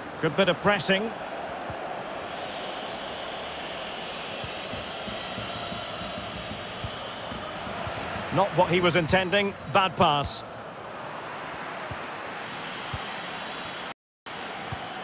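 A stadium crowd murmurs and cheers steadily in the background.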